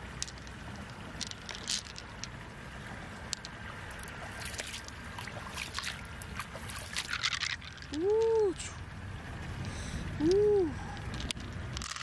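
Small pearls clink and click together in a hand.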